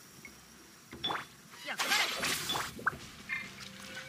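A bright magical whoosh and shimmer ring out.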